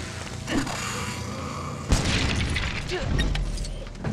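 A lightsaber hums and whooshes as it swings.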